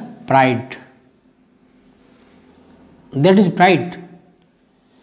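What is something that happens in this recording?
A middle-aged man reads aloud calmly, close by.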